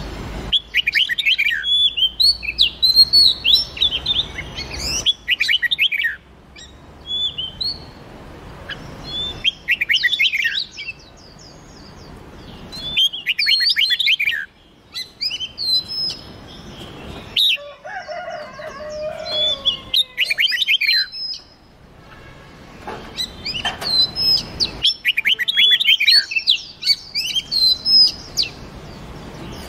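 Songbirds sing in bursts of quick, warbling, whistled phrases.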